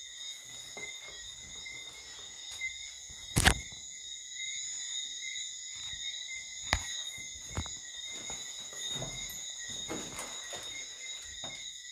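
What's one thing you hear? Footsteps shuffle slowly indoors.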